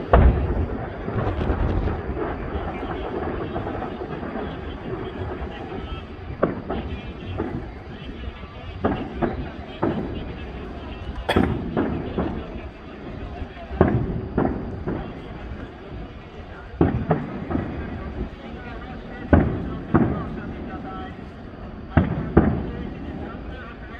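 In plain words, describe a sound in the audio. Fireworks crackle after bursting.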